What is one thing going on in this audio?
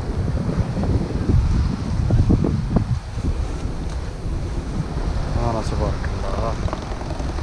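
Wind buffets outdoors with a low, gusty rumble.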